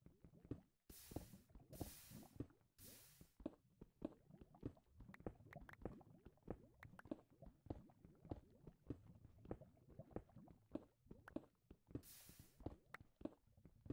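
Lava hisses and pops nearby.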